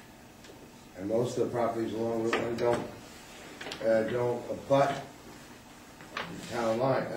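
A man speaks calmly in a room, heard from a distance.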